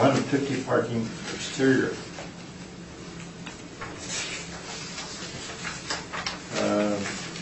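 An adult speaks calmly.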